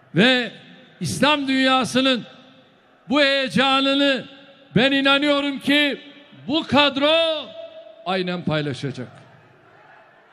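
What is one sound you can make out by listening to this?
A large crowd chants loudly in unison in a big echoing hall.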